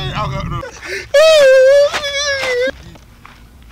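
A man shouts out loudly with a drawn-out voice.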